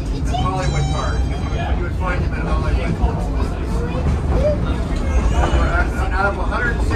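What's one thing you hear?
A trolley car rumbles and rattles along its tracks.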